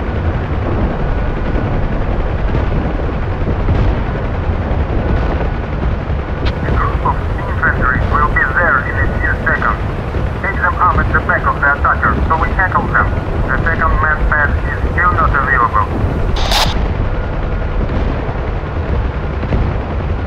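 A helicopter engine and rotor drone steadily with a deep, heavy rumble.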